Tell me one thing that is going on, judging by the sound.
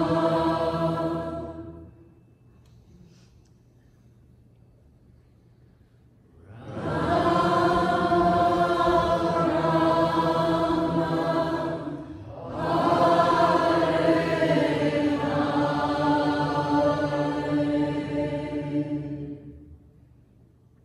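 A group of men and women sings a chant together.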